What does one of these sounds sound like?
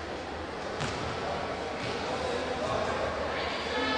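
A volleyball bounces on a hard floor.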